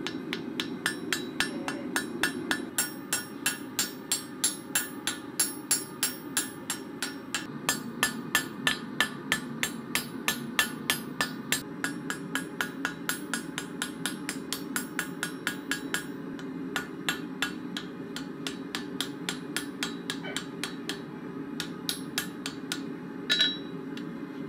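A hammer strikes hot metal on an anvil in quick, ringing blows.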